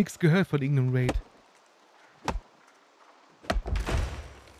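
An axe chops into a tree trunk.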